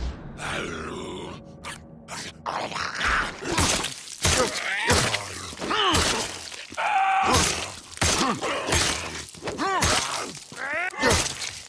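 A creature shrieks and snarls close by.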